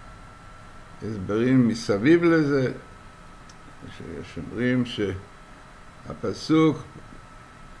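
An elderly man speaks calmly into a microphone, heard as through an online call.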